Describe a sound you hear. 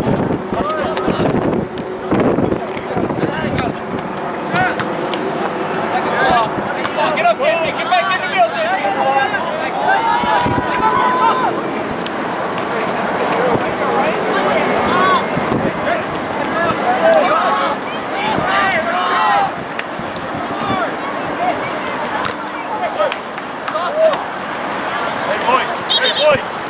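Young men shout and call out across an open playing field in the distance.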